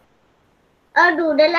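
A young girl speaks briefly over an online call.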